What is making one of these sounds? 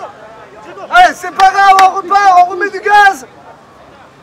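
Young men shout loudly together outdoors.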